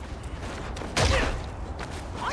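A heavy blow strikes with a sharp thud.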